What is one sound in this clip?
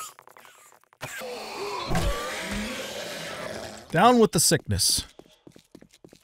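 A zombie snarls and growls.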